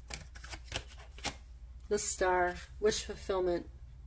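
A card slides and taps softly onto a cloth-covered table.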